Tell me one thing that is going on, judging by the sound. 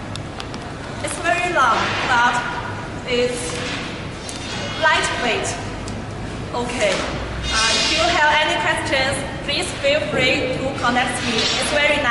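A young woman talks calmly and clearly, close by.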